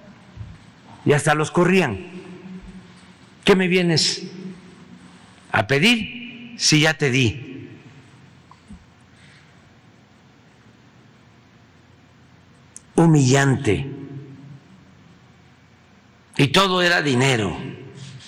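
An elderly man speaks with emphasis into a microphone in short bursts, with pauses between.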